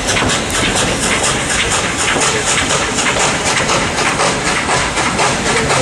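A steam locomotive chuffs rhythmically.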